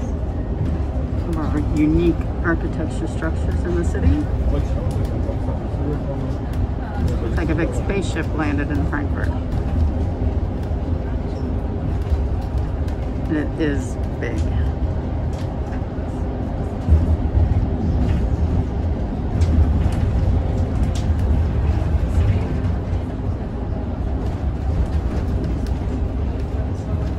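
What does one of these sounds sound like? A vehicle's engine and tyres rumble steadily from inside.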